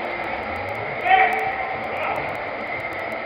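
Young men shout to each other from a distance in an echoing hall.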